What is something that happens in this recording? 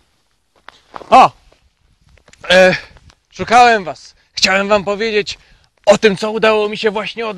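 A man speaks loudly outdoors, close by.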